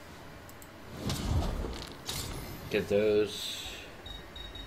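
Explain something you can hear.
A video game plays a brief whooshing chime as an item is bought.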